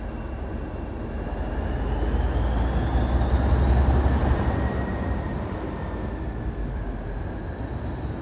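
Train wheels squeal with a rising, then falling whine.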